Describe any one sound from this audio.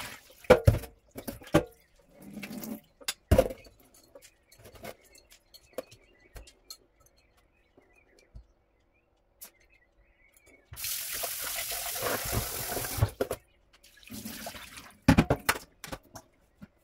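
A metal sieve knocks and clinks against the sink.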